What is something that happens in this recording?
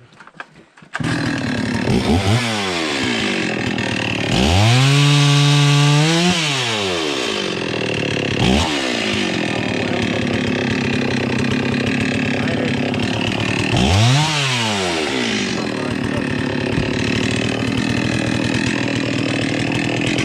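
A chainsaw idles and revs up loudly, close by.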